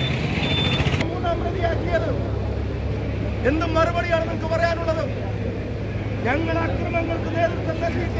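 A man speaks loudly and forcefully, close to the microphones.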